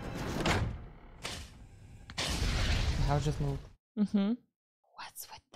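A young woman talks with surprise into a close microphone.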